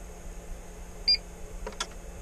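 A device gives a short electronic beep.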